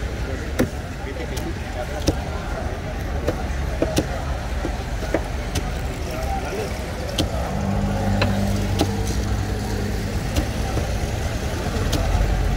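A knife taps and cuts through fish on a wooden board.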